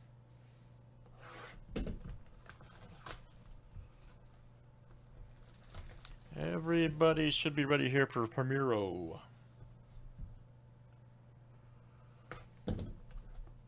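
Plastic wrapping crinkles as a box is handled.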